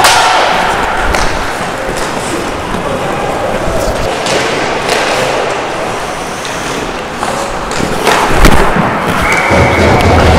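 Sounds echo in a large indoor rink.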